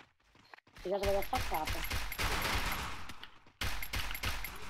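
Rapid gunshots fire in a burst.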